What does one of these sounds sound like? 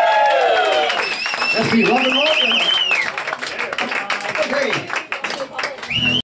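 People clap along nearby.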